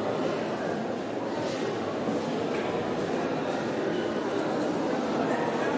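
Footsteps shuffle across a hard floor in an echoing hall.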